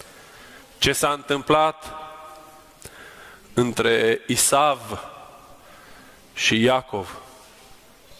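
A man chants in a deep voice, heard through a microphone in an echoing hall.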